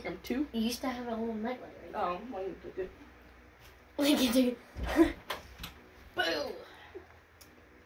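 A young girl talks with animation close by.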